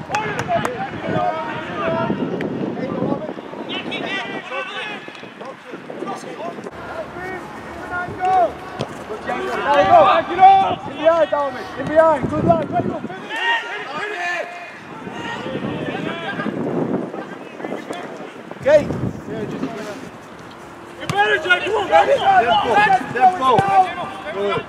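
Young men shout and call out to each other across an open pitch.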